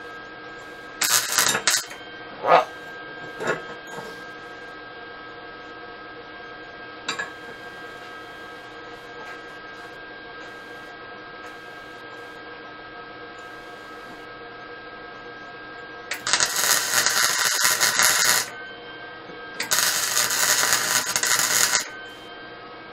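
An arc welder crackles and sizzles in short bursts.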